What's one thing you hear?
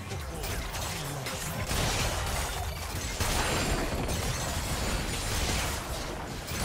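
Magic spells whoosh and crackle as a battle rages.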